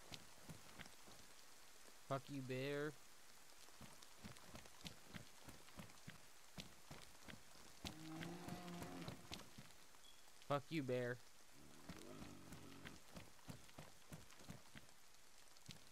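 Footsteps thud steadily on a paved road.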